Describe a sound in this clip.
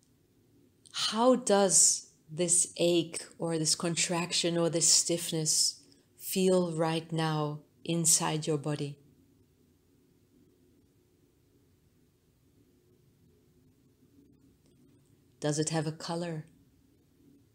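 A woman speaks calmly and softly.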